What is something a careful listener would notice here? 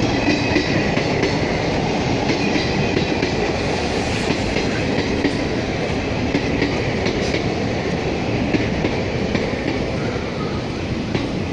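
A train rumbles and clatters steadily along the rails close by.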